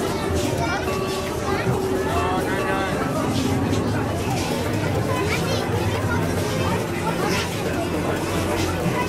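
A crowd of men and women talks and chatters close by.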